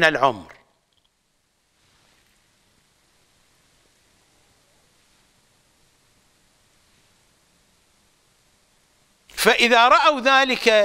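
An older man speaks calmly and expressively into a close microphone.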